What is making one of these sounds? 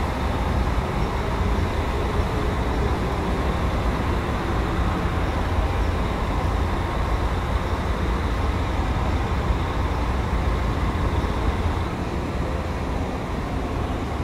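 A bus engine idles with a deep, steady rumble.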